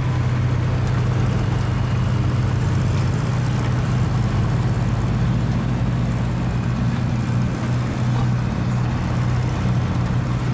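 A truck engine rumbles steadily as a truck slowly pulls away.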